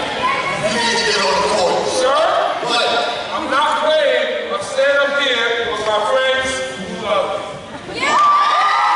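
A man talks with animation through a microphone and loudspeakers in a large echoing hall.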